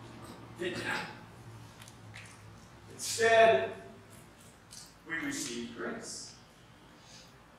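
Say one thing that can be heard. An elderly man speaks slowly and calmly through a microphone in an echoing hall.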